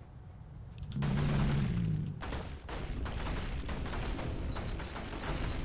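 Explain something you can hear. A magical spell bursts with a whooshing, crackling blast.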